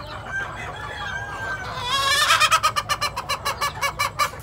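A rooster pecks at soil.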